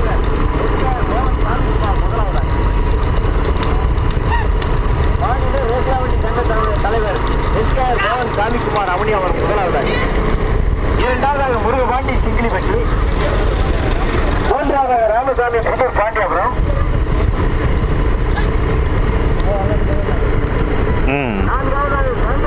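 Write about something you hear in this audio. Bulls' hooves clatter on the road.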